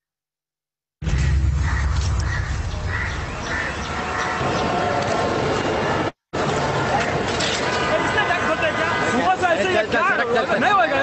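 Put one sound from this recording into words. Busy street noise with traffic plays loudly through an online call.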